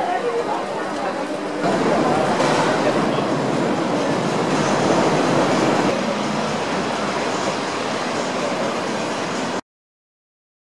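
Busy street noise hums steadily outdoors.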